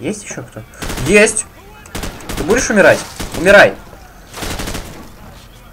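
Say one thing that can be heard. Rapid gunshots crack and echo in a hard-walled room.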